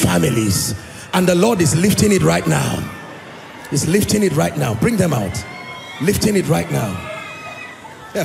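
A man preaches loudly and with passion through a microphone, in a large echoing hall.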